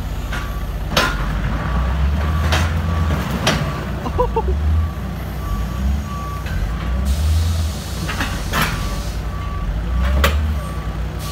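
Crushed car metal scrapes and clanks against a loader's forks.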